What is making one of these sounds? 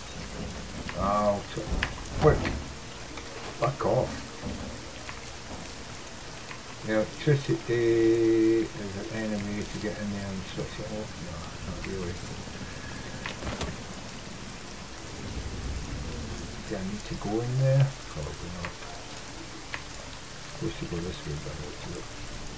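An elderly man talks calmly into a microphone.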